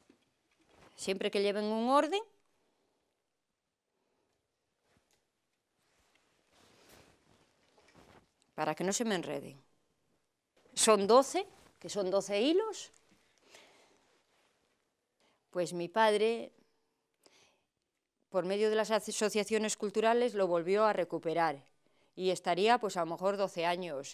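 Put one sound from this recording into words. A woman speaks calmly nearby, in short bursts with pauses.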